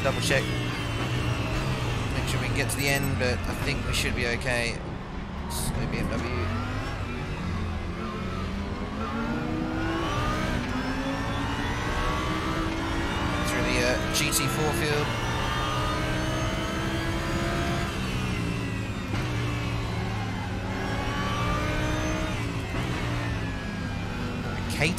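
A race car engine roars, revving up and down through the gears.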